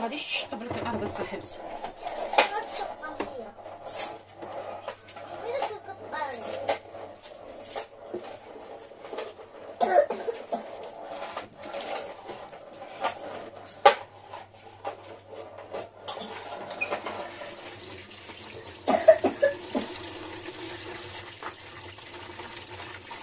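Hands scrub something wet with a sponge.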